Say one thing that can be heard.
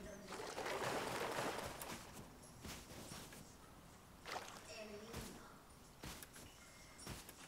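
Footsteps crunch on sand at a steady pace.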